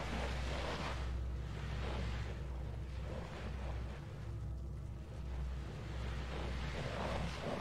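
Light footsteps patter across a wooden floor.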